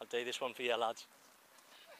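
A young man speaks close to the microphone.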